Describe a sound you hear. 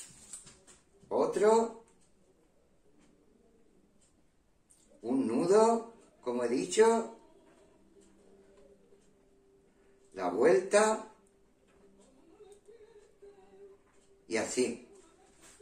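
A middle-aged man speaks calmly in short phrases, close by.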